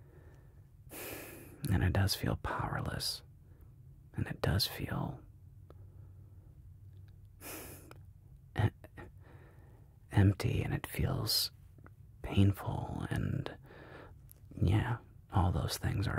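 A man speaks calmly and close to a microphone, with pauses between phrases.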